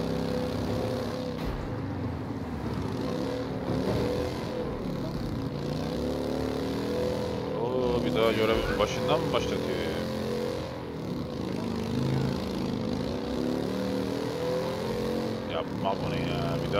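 A motorcycle engine hums and revs steadily.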